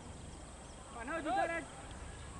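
A young man calls out nearby on an open field.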